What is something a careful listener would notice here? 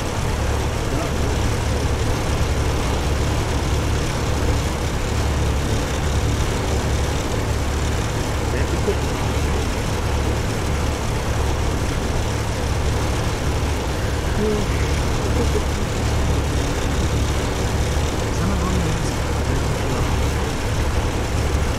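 A truck engine rumbles steadily as the vehicle drives along.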